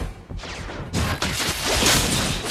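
Game sound effects whoosh and crackle as a magic attack strikes.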